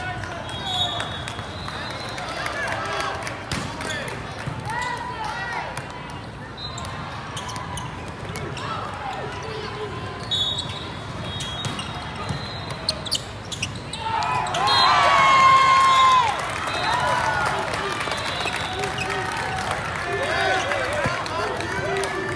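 Sneakers squeak on a sports court.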